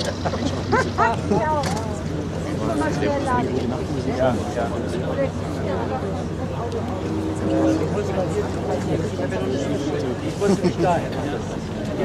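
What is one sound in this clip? A propeller plane's engine drones steadily as the plane taxis.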